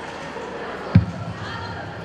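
A wrestler's body thuds onto a mat.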